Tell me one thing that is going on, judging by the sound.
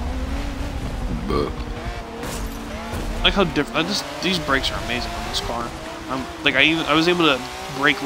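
Tyres screech on a wet track.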